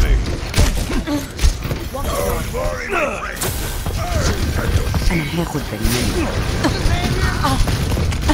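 Video game gunshots and effects crackle in bursts.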